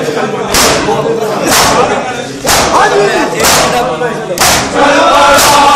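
A crowd of men chant loudly together in a room that echoes.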